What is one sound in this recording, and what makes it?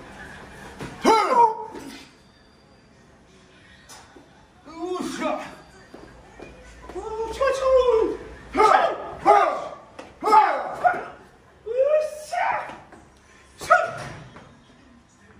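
A man shouts sharp, high cries in an echoing room.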